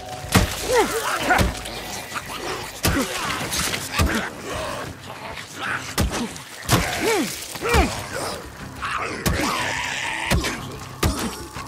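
Heavy blows thud and smack into flesh again and again.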